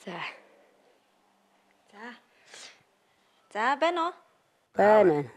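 A boy speaks close by in short, hesitant phrases.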